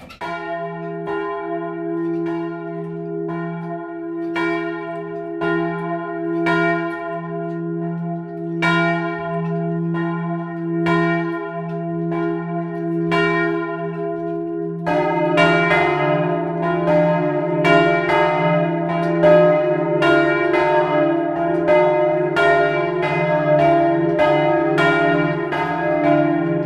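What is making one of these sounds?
Large church bells ring loudly and repeatedly close by, ringing on in a long hum.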